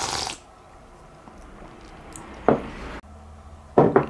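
A ceramic bowl is set down on a wooden table with a light knock.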